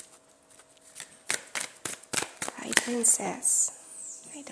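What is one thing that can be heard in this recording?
Playing cards are shuffled with quick riffling flicks.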